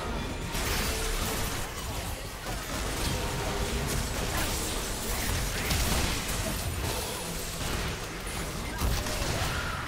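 Short chimes announce a kill.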